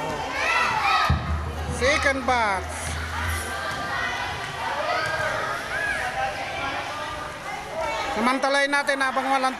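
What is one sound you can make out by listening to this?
A crowd of men and women chatters and calls out nearby.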